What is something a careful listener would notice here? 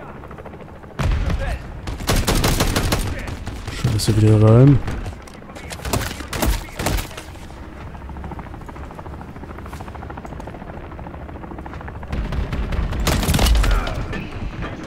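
Gunfire bursts out loudly in rapid shots.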